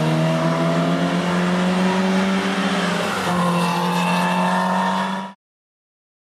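A rally car engine roars loudly as the car speeds away.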